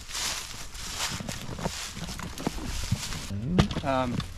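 Dry leaves rustle and crunch.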